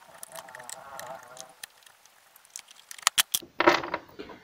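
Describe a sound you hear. A screwdriver clicks and scrapes against metal screws.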